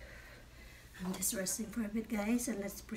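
A young woman speaks breathlessly close by.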